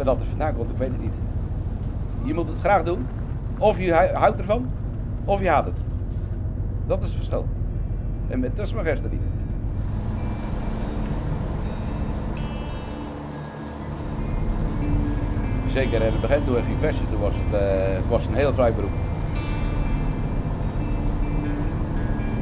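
A boat engine hums steadily.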